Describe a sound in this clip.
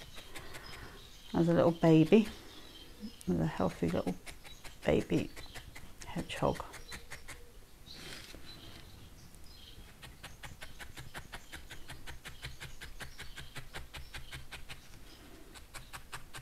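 A felting needle pokes rapidly and softly into wool.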